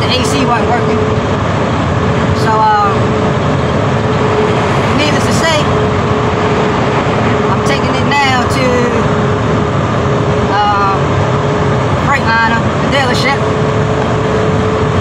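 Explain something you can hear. A car engine hums and tyres rumble on the road.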